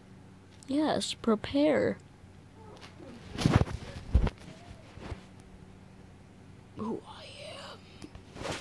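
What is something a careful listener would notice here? A young child speaks playfully close to the microphone.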